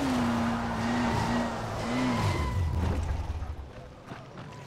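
A buggy engine hums and revs while driving.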